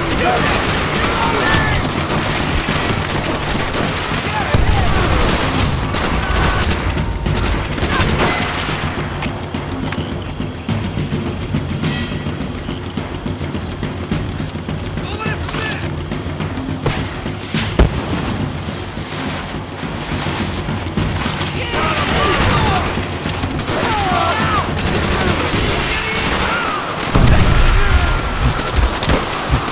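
Rifle shots bang loudly close by.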